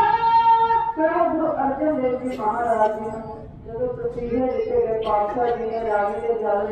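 A man sings loudly into a microphone through a loudspeaker.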